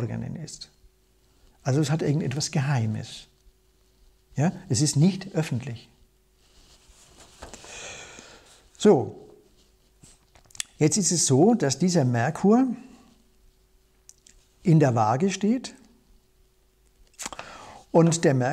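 An older man speaks calmly and clearly, close by, in pauses.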